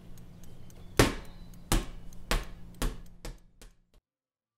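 A loose bicycle wheel bounces and clatters on the ground.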